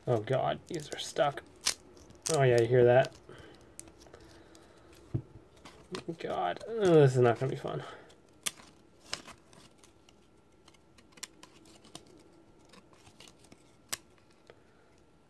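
Trading cards flick and tap against each other.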